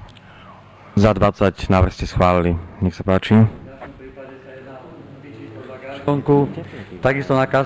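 An older man speaks calmly into a microphone, heard through loudspeakers in a large room.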